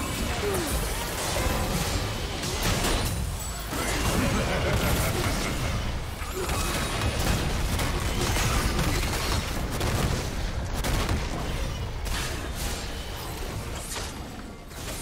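Magic spells blast and crackle in a busy fight.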